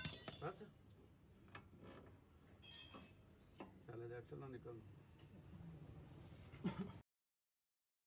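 Metal parts clink and scrape as a brake disc is handled.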